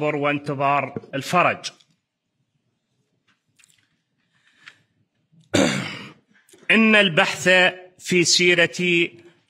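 A man speaks calmly into a microphone, with pauses.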